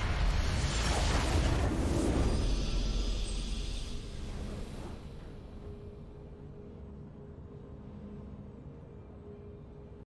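A triumphant fanfare swells and slowly fades.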